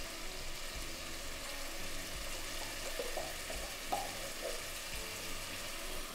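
Beans slide from a can and plop into a pot.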